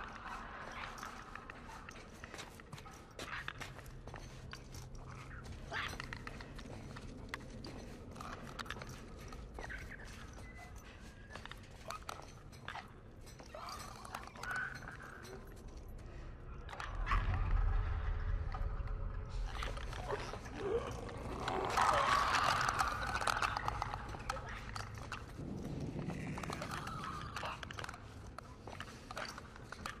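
Footsteps clank softly on a metal grating.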